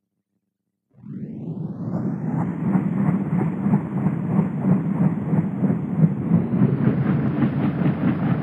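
A helicopter's engine spools up and its rotor beats.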